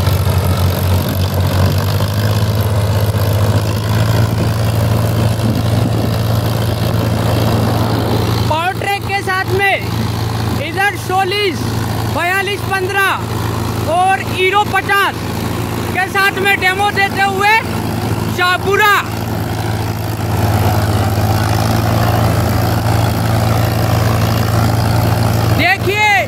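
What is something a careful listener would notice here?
Tractor engines rumble steadily nearby.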